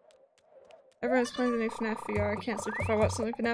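A cheerful video game jingle plays.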